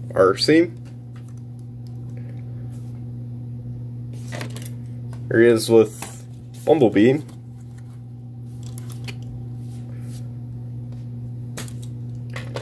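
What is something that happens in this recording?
Plastic toy parts click and tap as hands handle a figure.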